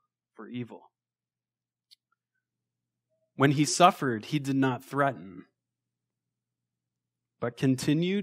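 A young man speaks calmly into a microphone, in short phrases with pauses.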